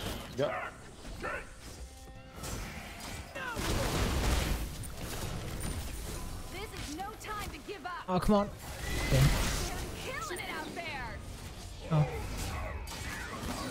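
Video game fighting effects whoosh and clash.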